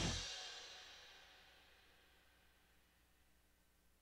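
A cymbal crashes and rings out, slowly fading.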